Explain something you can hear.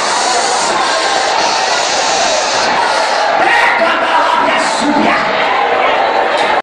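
A man preaches loudly and fervently through a microphone, his voice echoing in a large hall.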